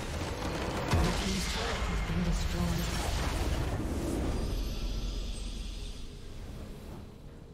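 A loud magical blast booms and crackles, then fades away.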